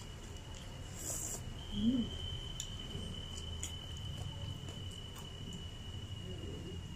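A young woman slurps soup from a cup close to the microphone.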